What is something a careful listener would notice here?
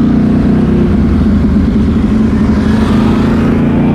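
Another quad bike idles and revs nearby.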